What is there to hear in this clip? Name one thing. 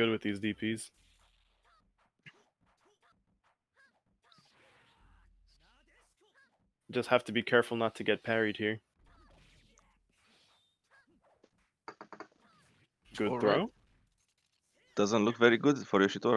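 Swords clash and slash in sharp, quick strikes.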